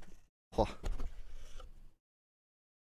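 A cardboard box lid rustles and knocks as it opens.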